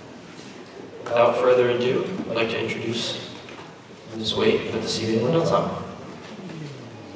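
A big band plays loud brass chords in a large echoing hall.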